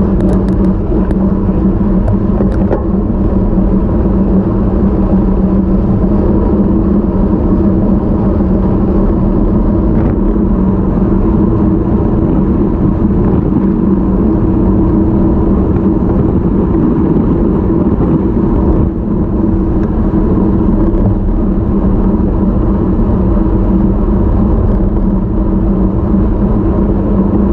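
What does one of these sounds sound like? An engine hums steadily at a low pitch.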